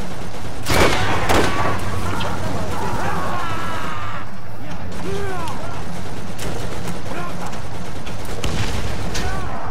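Loud gunshots and explosions boom from a video game.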